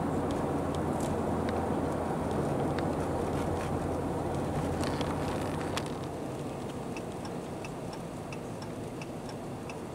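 Snowflakes tick softly against a windshield.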